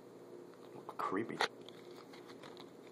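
A stiff card slides and taps softly against a hard surface.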